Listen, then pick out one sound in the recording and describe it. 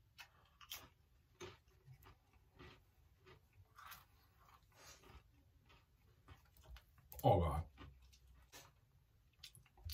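A man chews food with his mouth closed.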